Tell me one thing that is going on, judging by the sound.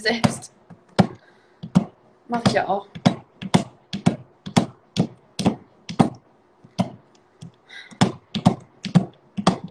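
A knife chops on a cutting board in quick, regular knocks.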